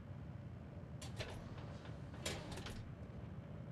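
A door creaks and swings open.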